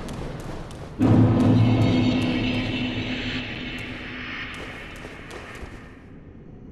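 A deep, shimmering chime swells and slowly fades.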